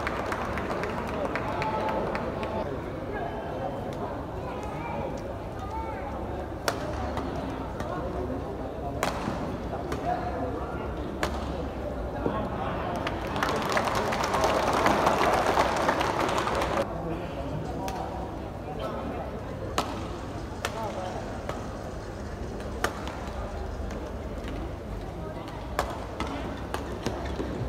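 Rackets strike a shuttlecock with sharp pops in a large echoing hall.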